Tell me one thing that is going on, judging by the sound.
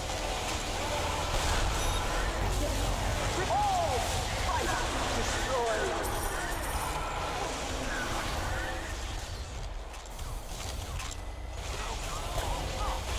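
Gunfire and explosions crackle steadily in a video game battle.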